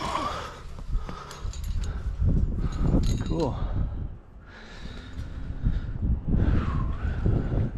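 Wind buffets a nearby microphone outdoors.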